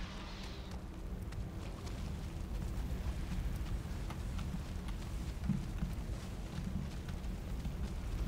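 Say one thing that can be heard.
A jet of fire roars steadily.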